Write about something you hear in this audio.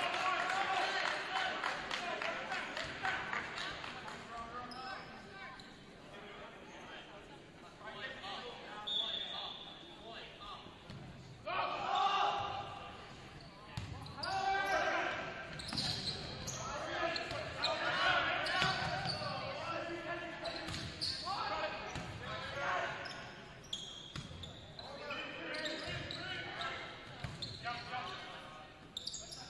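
Young players shout and call out to each other in a large echoing gym.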